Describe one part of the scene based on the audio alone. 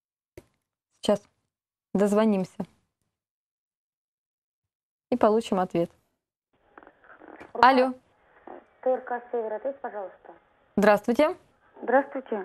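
A woman speaks calmly and clearly into a close microphone, pausing between phrases.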